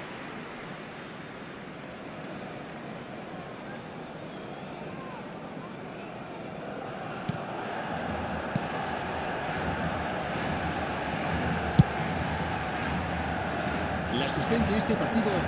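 A stadium crowd roars steadily, growing louder.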